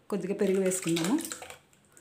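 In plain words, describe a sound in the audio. Buttermilk pours into a plastic blender jar.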